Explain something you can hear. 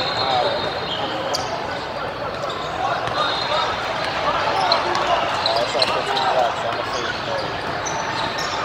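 Many voices of a crowd echo through a large hall.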